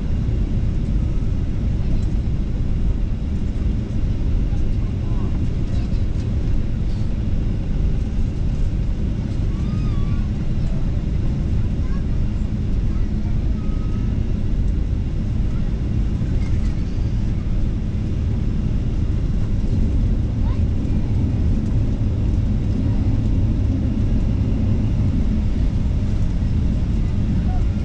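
A jet engine roars with a steady low drone.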